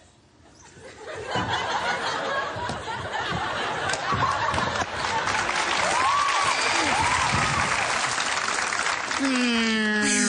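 A large audience laughs and cheers loudly.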